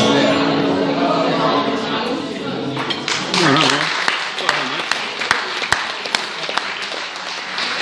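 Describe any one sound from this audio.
An acoustic guitar is strummed and plucked through loudspeakers in an echoing room.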